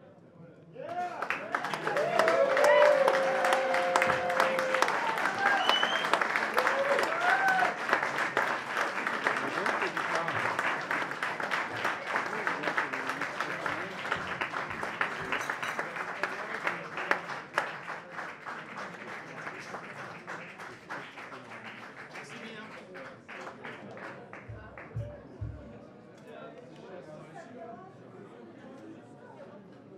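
A double bass is plucked.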